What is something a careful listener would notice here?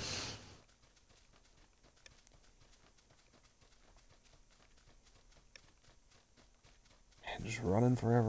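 Quick footsteps rustle through grass.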